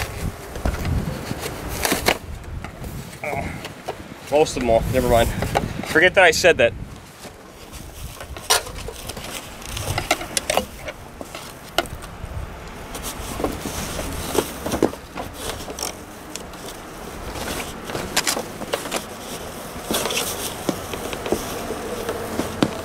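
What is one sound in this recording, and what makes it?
Metal parts click and clank under a car's hood.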